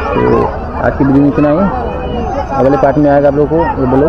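Men talk at a distance outdoors.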